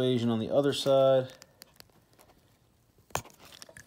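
A small metal pick scrapes and taps against a plastic connector.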